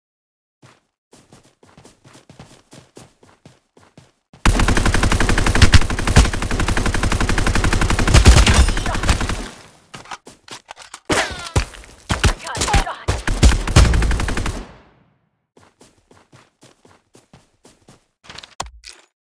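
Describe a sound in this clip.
Footsteps patter steadily on grass.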